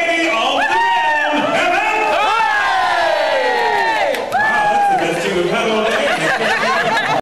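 A crowd of men and women shout and chatter.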